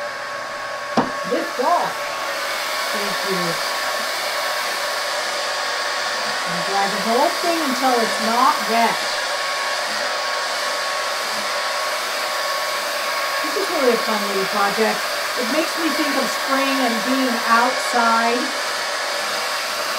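A hair dryer blows with a steady whirring hum.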